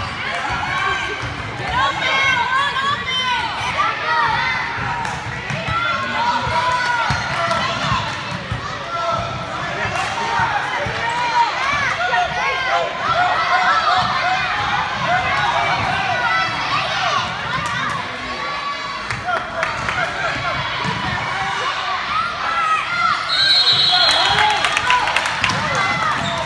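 A crowd of spectators cheers and shouts in an echoing gym.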